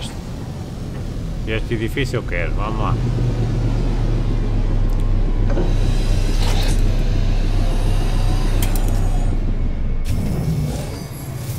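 A spaceship engine hums and roars steadily.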